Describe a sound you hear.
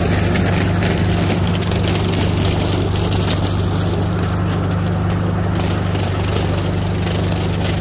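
A rotary mower whirs as it cuts dry stalks.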